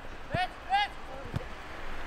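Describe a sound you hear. A football is kicked with a dull thud.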